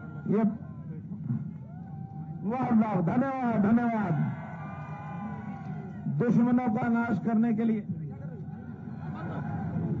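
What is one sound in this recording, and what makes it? An elderly man speaks forcefully into a microphone over a loudspeaker.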